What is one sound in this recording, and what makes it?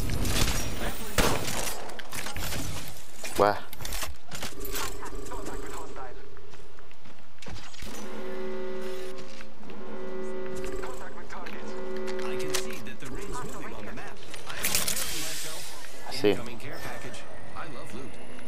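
Video game sound effects clatter and ring out.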